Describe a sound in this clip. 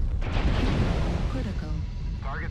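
Laser weapons fire with a sharp buzzing burst.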